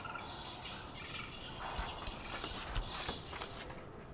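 Metal ladder rungs clank under climbing footsteps.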